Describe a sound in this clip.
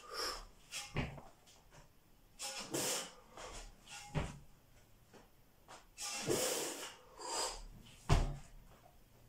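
A heavy weight thuds down onto a man's shoulders.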